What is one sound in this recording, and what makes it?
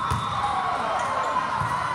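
A volleyball thumps as it is hit.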